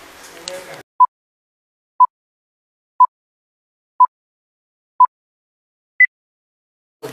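Short electronic beeps sound once a second in a countdown, the last one higher.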